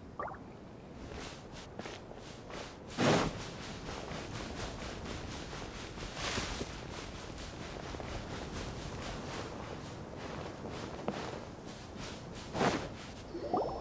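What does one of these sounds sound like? Footsteps run quickly over sand.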